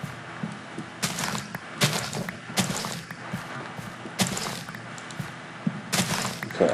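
Crops rustle and snap as they are broken, in short bursts.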